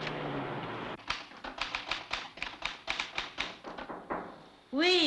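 A typewriter clacks in quick bursts of keystrokes.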